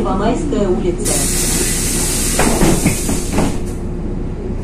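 A bus swishes past close by on a wet road.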